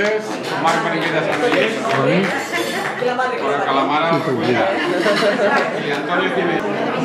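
A middle-aged man speaks with animation to a crowd, close by in a room.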